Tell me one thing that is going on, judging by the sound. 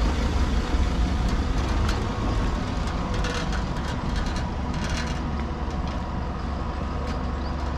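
A pickup truck's engine hums as it drives away over cobblestones.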